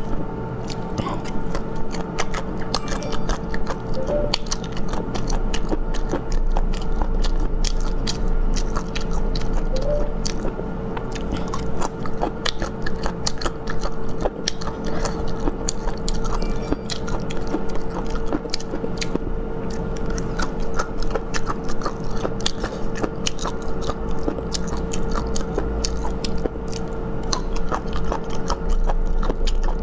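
A young woman chews food wetly and noisily, close to a microphone.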